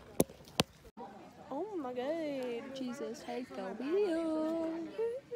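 A teenage girl talks animatedly, close to the microphone.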